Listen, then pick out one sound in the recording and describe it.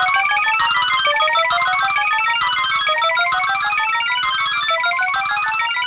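Cheerful, bouncy electronic game music plays with a quick, repeating tune.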